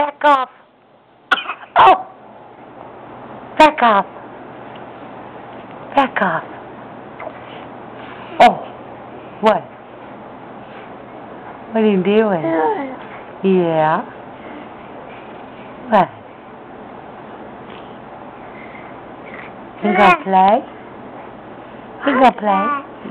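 A baby babbles and squeals close by in short bursts.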